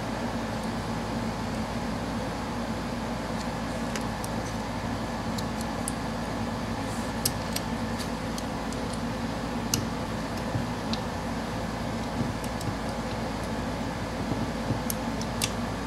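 Small metal carburetor parts click and tap together as they are fitted by hand.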